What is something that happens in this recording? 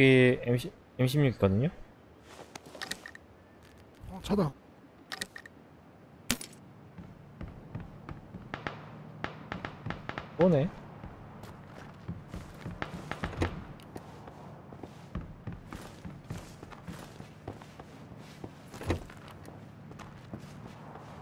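Footsteps creak and thud on a wooden floor.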